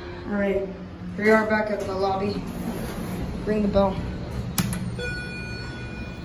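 Elevator doors slide open with a low hum.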